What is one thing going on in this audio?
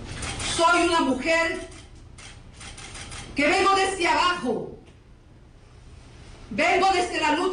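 A woman speaks into microphones in short phrases with pauses.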